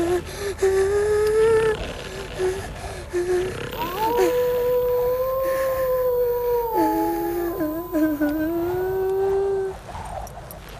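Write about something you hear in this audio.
A young boy sobs and whimpers close by.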